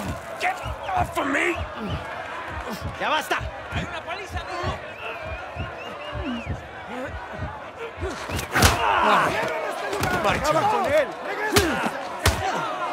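A man grunts and strains as he struggles.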